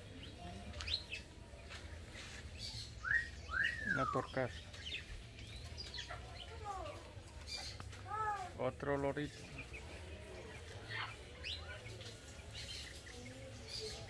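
Caged birds chirp and whistle in short bursts nearby.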